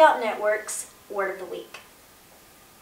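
A young woman speaks brightly and close to a microphone.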